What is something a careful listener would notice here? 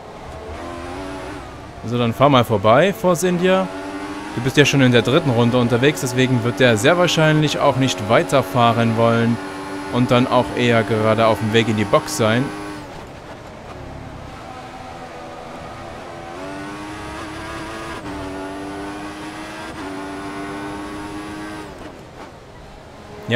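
A racing car engine whines at high revs, shifting up through the gears.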